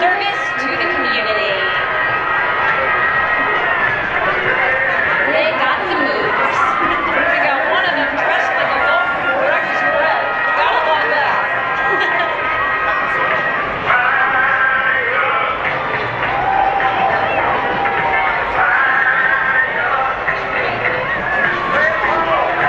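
A large outdoor crowd cheers and chatters.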